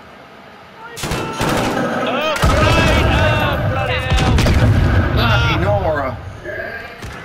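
Gunfire rattles in rapid bursts at close range.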